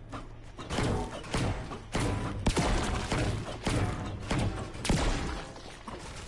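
A pickaxe strikes hard again and again with loud, crunching, echoing hits.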